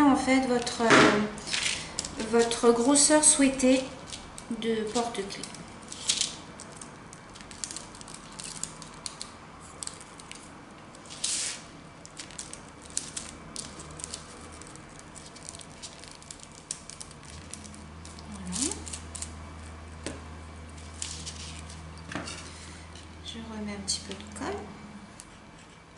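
Fingers rustle and tap lightly on paper close by.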